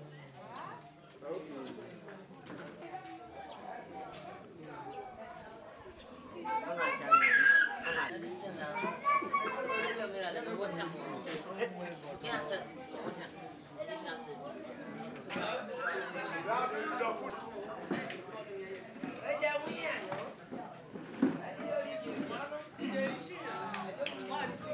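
Several women talk and chatter nearby.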